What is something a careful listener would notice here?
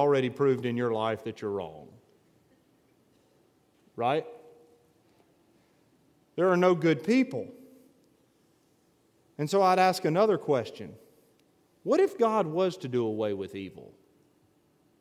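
A man speaks slowly and calmly through a microphone, in phrases with pauses.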